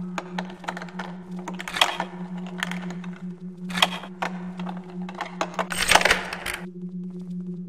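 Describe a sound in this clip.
A lock clicks and rattles as it is picked.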